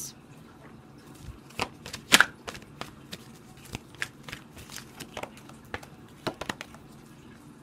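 Playing cards riffle and flick softly as they are shuffled.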